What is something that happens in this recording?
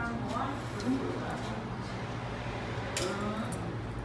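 A young woman slurps noodles noisily.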